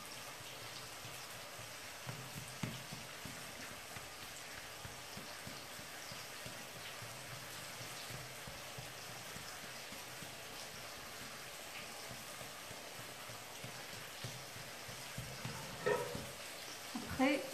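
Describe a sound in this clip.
Hands pat and press soft dough on a countertop.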